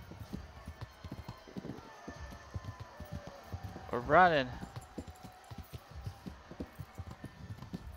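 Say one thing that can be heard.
Horse hooves clop steadily on a dirt path.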